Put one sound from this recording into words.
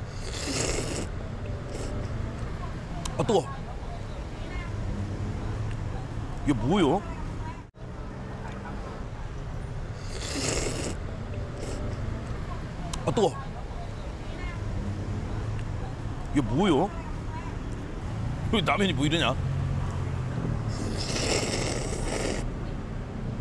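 A man slurps noodles loudly.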